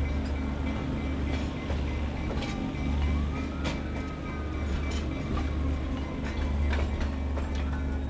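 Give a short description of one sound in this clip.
A railway carriage rumbles slowly past on the rails.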